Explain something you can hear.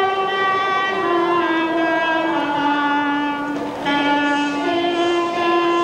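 A lively folk melody plays steadily.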